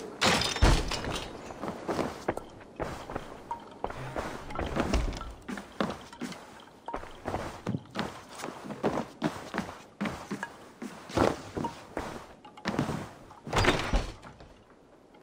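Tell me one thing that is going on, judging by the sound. Footsteps thud and things clatter on a wooden floor.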